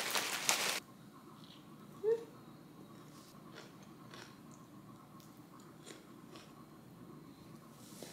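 A young woman crunches cereal as she chews.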